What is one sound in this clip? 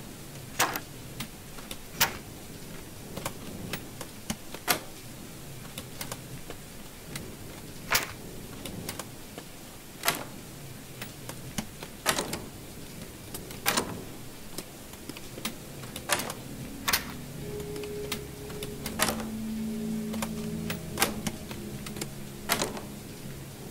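A metal lock clicks sharply again and again as it is picked.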